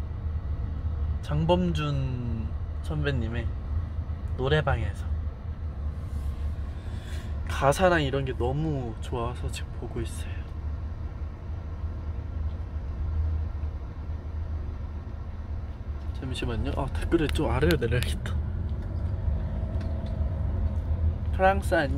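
A car engine hums low and steady inside the car.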